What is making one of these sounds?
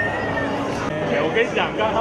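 A crowd cheers together in a toast.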